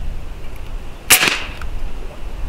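An air rifle fires a single sharp shot.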